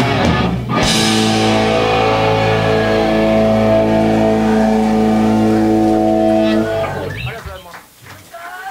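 An electric guitar band plays a loud, ringing chord that fades out in an echoing hall.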